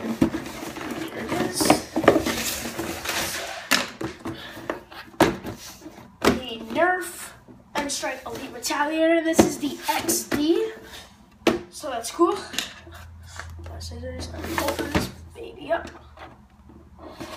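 A cardboard box rustles and scrapes on a wooden floor.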